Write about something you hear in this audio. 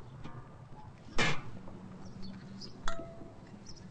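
Plates clink on a table.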